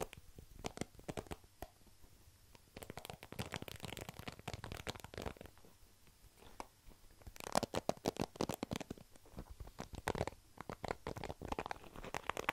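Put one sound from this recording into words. Fingers flick the plastic bristles of a hairbrush close to a microphone.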